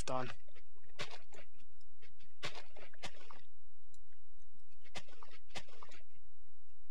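A pickaxe digs into stone blocks with short crunching knocks.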